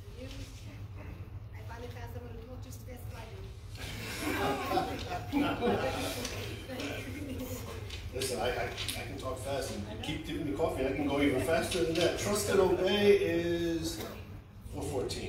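A middle-aged man preaches with feeling through a microphone in an echoing hall.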